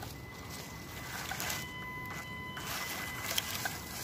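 Small tyres crunch over dry leaves.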